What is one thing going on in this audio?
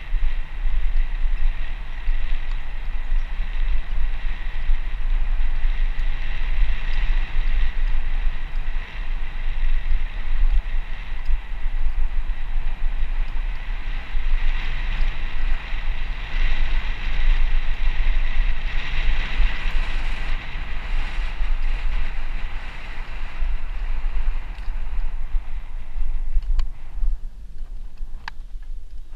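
Wind buffets against the microphone.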